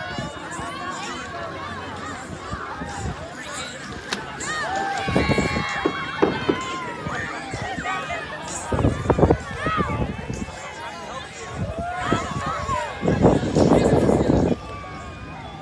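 A crowd of people talk and shout outdoors.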